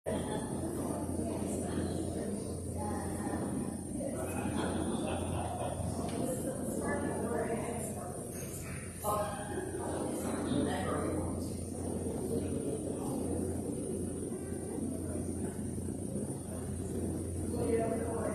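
Several adults murmur quietly at a distance in a large echoing church.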